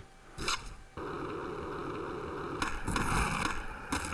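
Skateboard wheels roll steadily over concrete.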